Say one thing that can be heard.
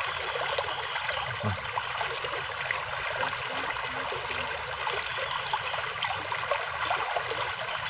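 A shallow stream ripples and flows.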